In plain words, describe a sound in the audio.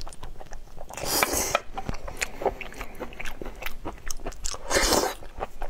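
A man slurps loudly up close.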